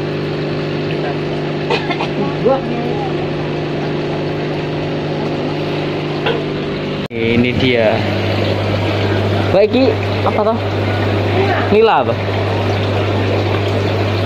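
Aquarium pumps hum steadily.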